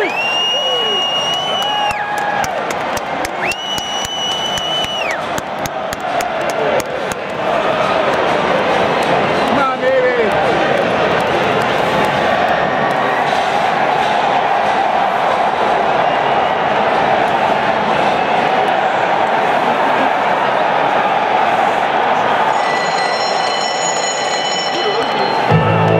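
A huge stadium crowd cheers and roars steadily outdoors.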